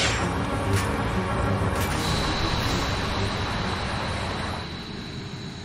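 A video game's magic energy blast crackles and roars.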